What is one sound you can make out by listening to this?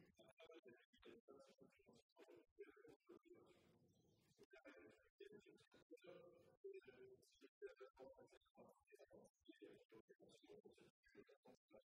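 A middle-aged man reads out a speech into a microphone.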